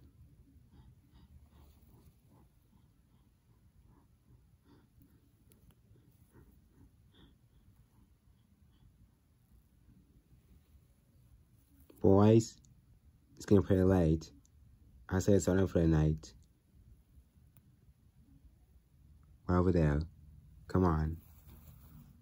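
Small plastic toy figures are set down softly on a carpet.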